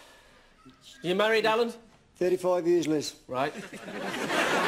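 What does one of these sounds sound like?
A middle-aged man speaks with animation and laughs.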